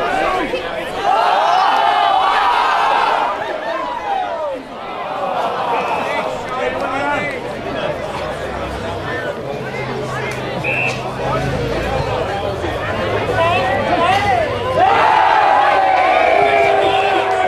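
Spectators shout and cheer outdoors from a distance.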